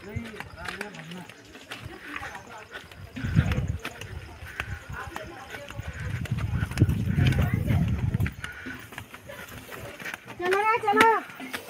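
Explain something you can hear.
Footsteps scuff on a stone path.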